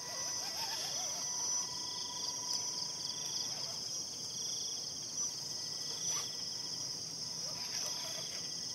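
Small electric motors whine as toy trucks crawl up a dirt slope.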